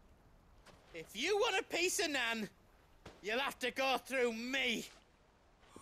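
A man threatens in a deep, gruff voice.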